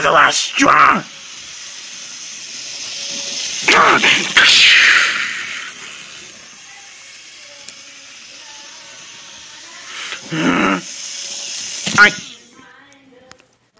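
A model train whirs along its track.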